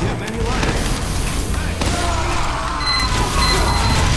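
An explosion bursts close by.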